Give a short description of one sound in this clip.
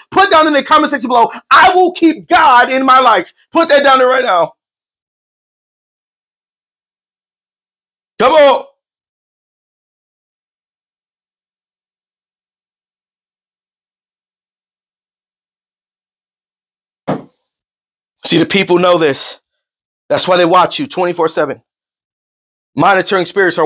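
A man speaks forcefully and with animation close to a microphone.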